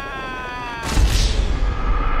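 A body hits the ground with a heavy thud.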